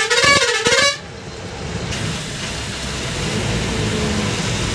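A bus engine rumbles steadily nearby.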